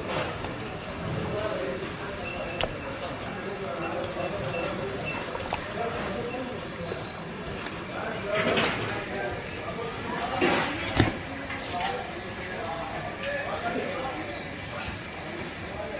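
A knife slices through raw fish flesh.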